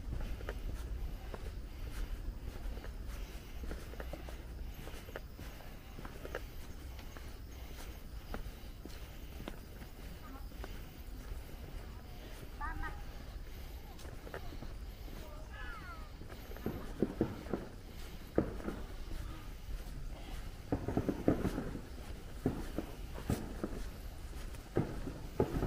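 Footsteps walk on a paved path close by.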